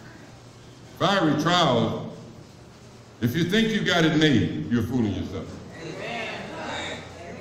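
A man speaks loudly and with animation, heard in a room with some echo.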